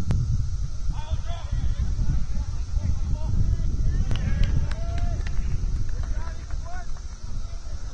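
Players call out to each other far off across an open field.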